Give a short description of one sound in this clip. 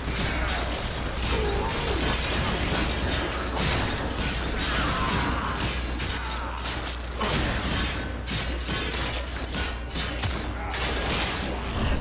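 Energy blasts crackle and hiss.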